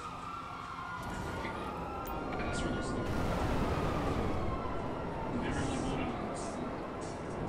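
A jet engine roars loudly as a hoverbike lifts off and flies.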